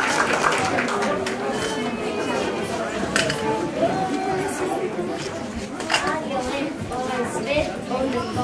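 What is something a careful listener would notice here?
A young girl sings through a microphone.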